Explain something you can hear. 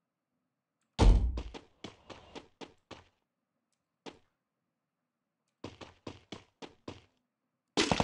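Footsteps run across a floor.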